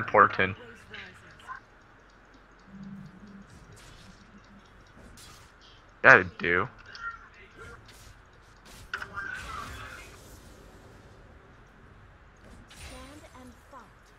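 Game sound effects of spells and blows clash and whoosh during a battle.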